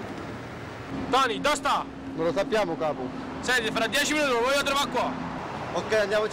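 A young man speaks firmly up close.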